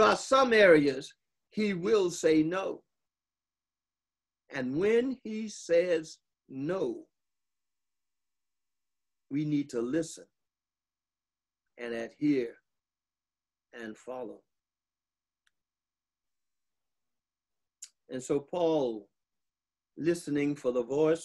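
An older man speaks calmly in short phrases with long pauses between them.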